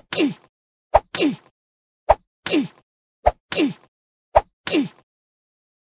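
Short swooshing hit sounds sweep downward after each impact.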